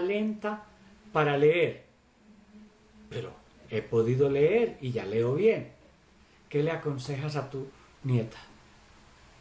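An elderly man speaks calmly and slowly over an online call.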